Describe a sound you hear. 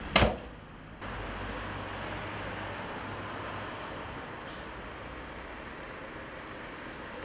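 A car drives slowly along a street.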